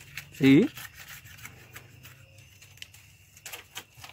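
A knife scrapes and taps on strips of cane.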